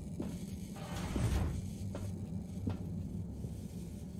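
Footsteps clomp up stairs.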